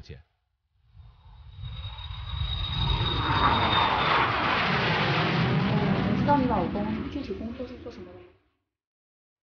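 A jet plane roars loudly overhead.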